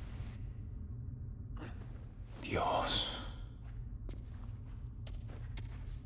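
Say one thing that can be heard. Footsteps crunch softly on a littered floor.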